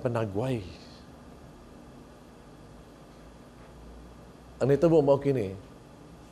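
A man speaks slowly and with feeling into a microphone, pausing between phrases.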